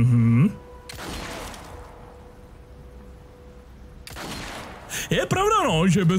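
A pistol fires a few shots.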